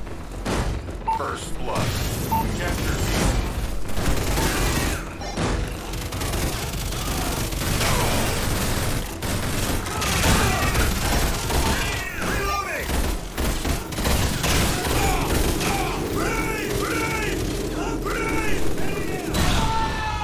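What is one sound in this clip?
Rapid gunfire crackles in bursts throughout.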